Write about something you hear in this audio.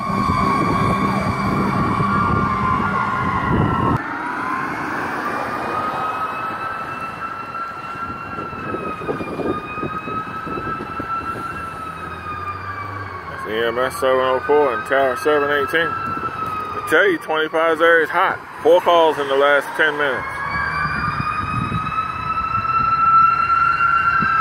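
Traffic drives past on a nearby road.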